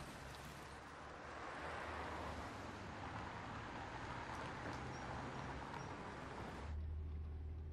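A vintage truck drives past on a street.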